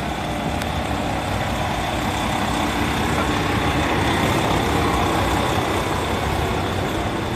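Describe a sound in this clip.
A bus engine idles close by, growing louder.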